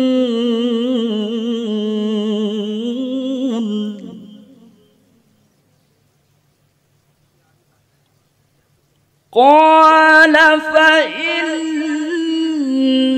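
A man chants melodiously into a microphone, pausing for breath between long sustained phrases.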